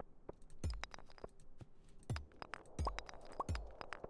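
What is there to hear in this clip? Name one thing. A pickaxe strikes rocks with sharp knocks.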